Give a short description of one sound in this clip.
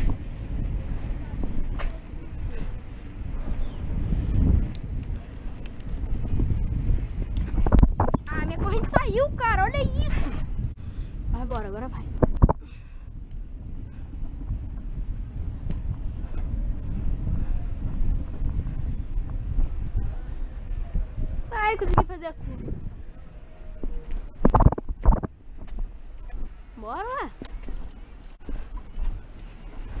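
Wind rushes past the microphone as a bicycle moves.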